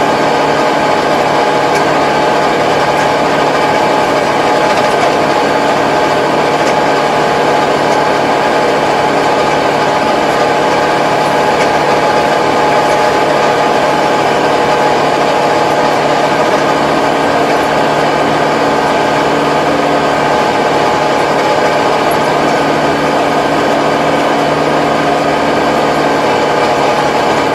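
A rotary tiller churns through soil with a steady whirring rumble.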